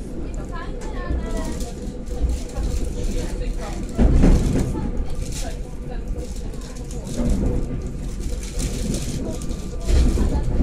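Train wheels knock rhythmically over rail joints.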